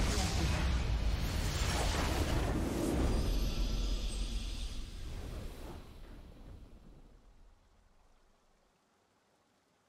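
A triumphant game fanfare swells loudly and then fades away.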